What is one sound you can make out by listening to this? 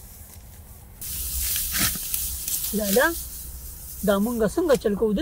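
Dry wheat stalks rustle and snap as they are pulled.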